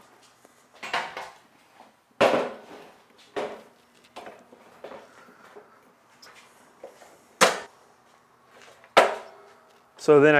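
A heavy metal machine thuds and clanks onto a metal stand.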